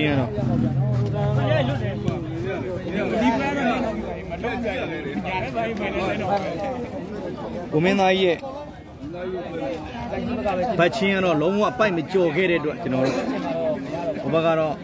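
A large crowd chatters and calls out nearby.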